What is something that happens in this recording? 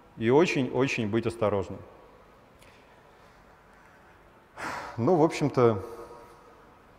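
A man speaks calmly into a headset microphone, in short bursts with pauses.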